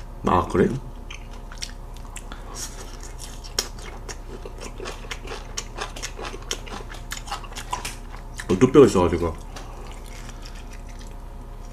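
A young man chews food with smacking sounds.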